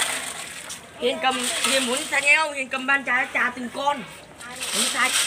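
A child talks loudly nearby.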